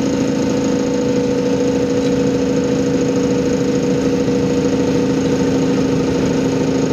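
Tyres roll on the road with a constant rumble.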